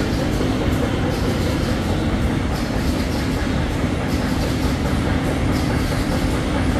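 Paper rustles as it feeds over rollers.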